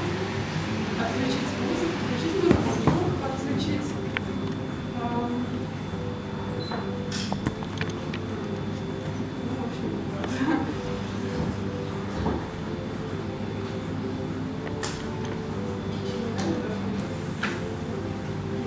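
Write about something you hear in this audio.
A young woman speaks calmly to an audience.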